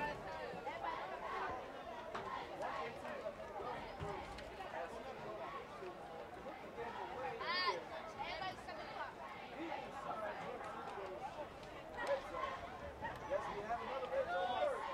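A crowd of young men and boys shouts and talks outdoors across an open field.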